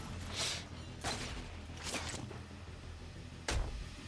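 A metal pipe cracks and crashes down.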